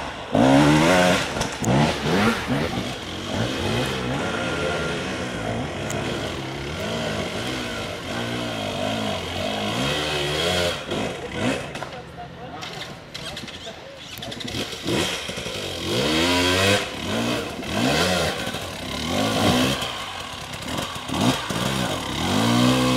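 A dirt bike engine revs hard in bursts, rising and falling.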